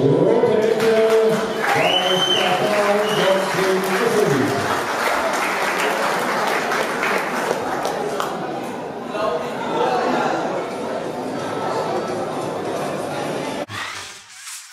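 A crowd of spectators applauds and cheers in a large hall.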